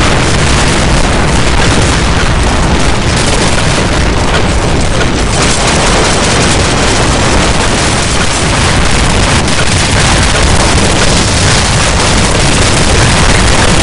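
A machine gun fires in rapid, sustained bursts.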